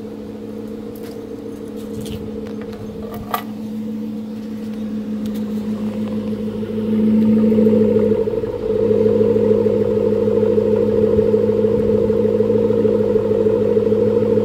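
A truck engine idles with a deep, throaty rumble that grows louder close to the exhaust.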